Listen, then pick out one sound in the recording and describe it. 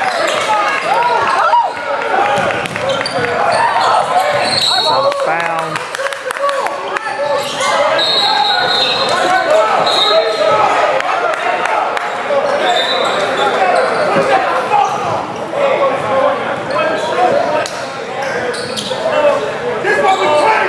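Men shout and call out across a large echoing gym.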